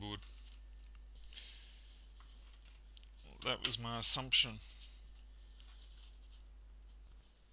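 Plastic parts of a laptop click and rattle as they are handled.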